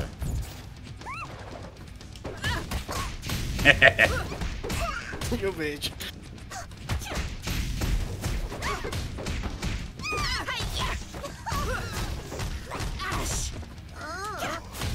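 Cartoon characters yelp and cry out during a fight.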